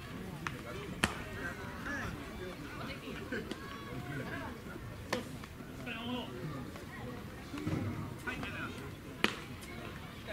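A baseball smacks into a catcher's glove.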